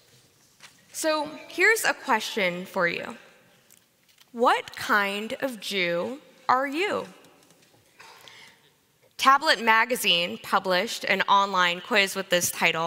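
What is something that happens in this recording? A young woman speaks calmly into a microphone in a large echoing hall.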